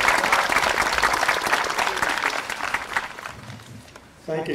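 A crowd applauds outdoors, then the clapping dies away.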